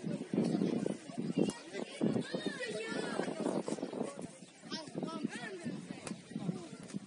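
Young men shout and call out to each other across an open field outdoors.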